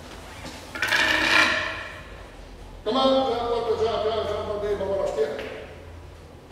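A man shouts loudly and dramatically in a large echoing hall.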